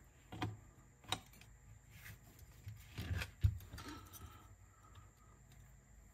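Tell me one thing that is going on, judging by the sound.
Plastic and metal parts click and rattle as hands handle a small mechanism.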